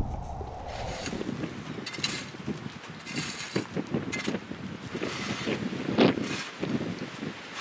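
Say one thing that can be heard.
A garden fork scrapes and rustles through dry wood chips.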